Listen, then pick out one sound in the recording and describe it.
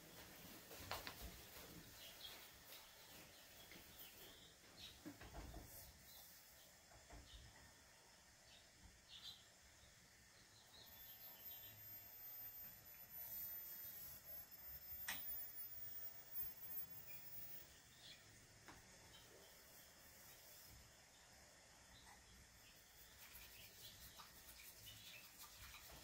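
Small utensils click softly against a bowl.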